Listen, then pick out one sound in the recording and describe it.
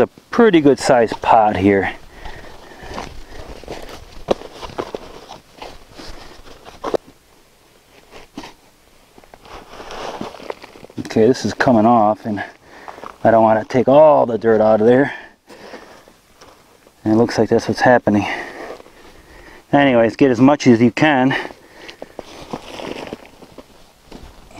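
Soil scrapes and rustles as a man scoops it by hand into a bucket.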